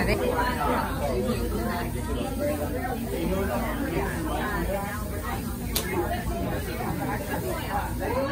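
A crowd of young women talk and chatter close by.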